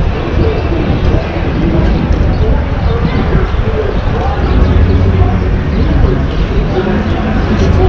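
Small scooter wheels roll and rattle over paving stones.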